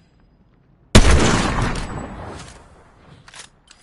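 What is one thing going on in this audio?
A rifle fires a single loud shot that booms and slowly dies away.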